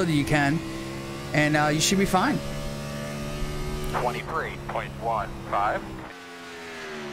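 A race car engine roars loudly and revs up and down.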